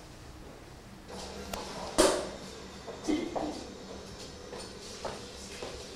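Footsteps sound on a hard floor.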